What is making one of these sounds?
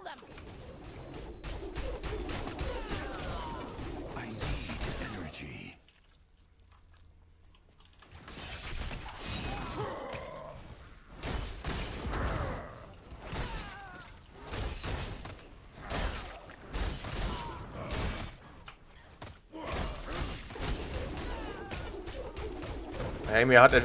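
Swords clash and slash repeatedly in a fight.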